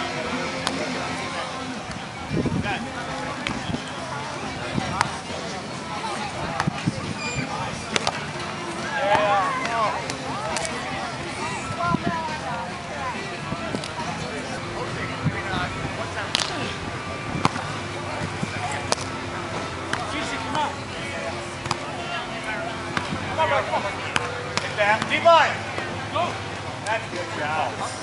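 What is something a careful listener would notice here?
A volleyball is struck with sharp slaps of the hands.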